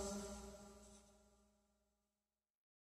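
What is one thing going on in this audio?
A piano chord rings out and slowly fades away.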